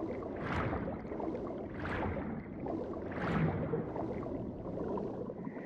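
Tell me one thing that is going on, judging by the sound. Water swirls and bubbles around a swimmer, with swelling whooshes every second or so.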